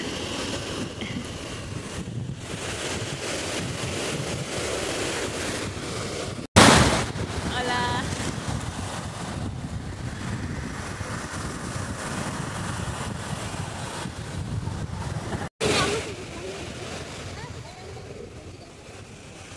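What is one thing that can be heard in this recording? Waves wash onto a beach and break steadily.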